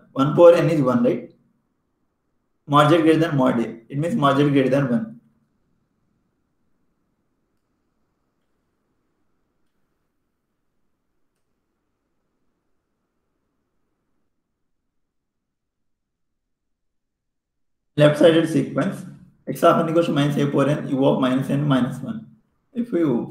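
A young man lectures calmly through a microphone, with long pauses.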